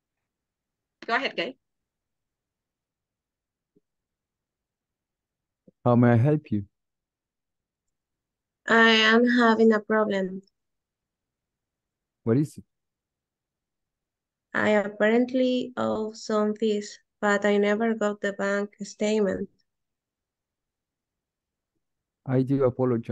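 A woman speaks clearly in short bursts through an online call.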